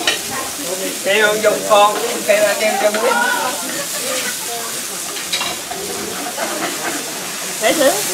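A woman and a man talk and laugh nearby.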